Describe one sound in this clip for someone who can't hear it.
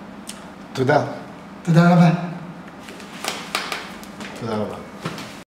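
A middle-aged man speaks calmly and cheerfully close to a microphone.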